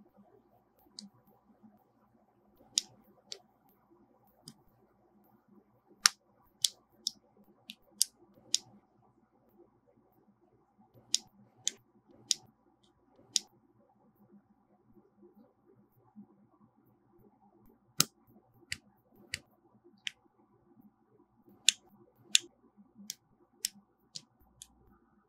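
Small plastic parts click and snap together.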